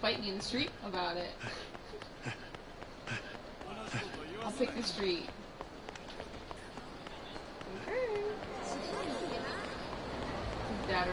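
Footsteps run quickly on hard pavement.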